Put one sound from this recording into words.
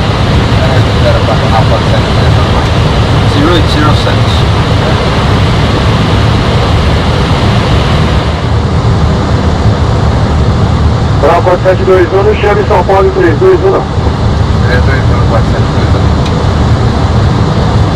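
Steady engine and air noise roar throughout an aircraft cockpit.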